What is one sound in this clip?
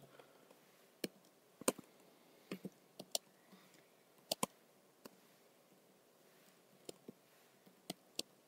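Keyboard keys click sharply in short, uneven bursts.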